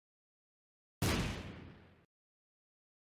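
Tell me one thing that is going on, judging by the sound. A bomb explodes with a loud boom that quickly fades.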